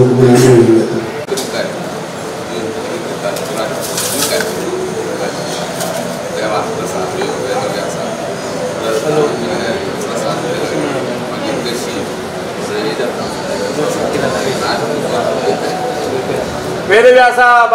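Several men talk and murmur close by.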